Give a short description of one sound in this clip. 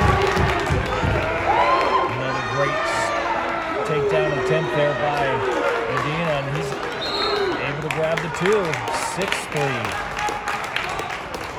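Men shout encouragement nearby.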